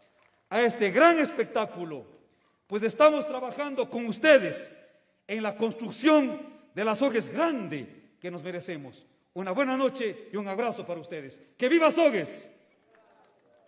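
A man gives a speech into a microphone, speaking loudly and firmly through a loudspeaker.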